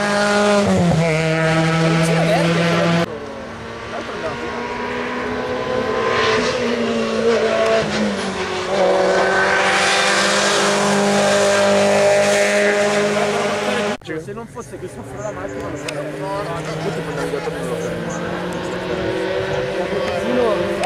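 Racing car engines roar past, revving high and fading away.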